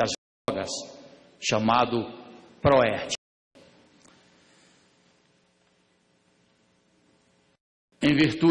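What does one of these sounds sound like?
A middle-aged man reads out a speech through a microphone, in a large echoing hall.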